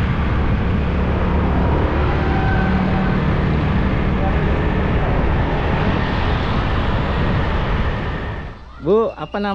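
Motorbike engines hum as they ride past on a road.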